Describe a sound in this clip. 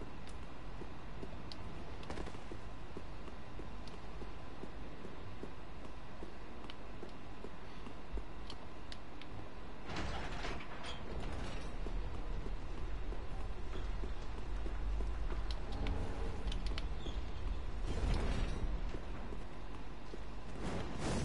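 Armour clanks with footsteps on stone.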